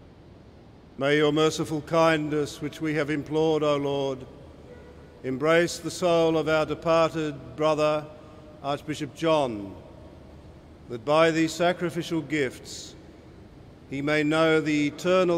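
An elderly man chants in a steady singing voice through a microphone in a large echoing hall.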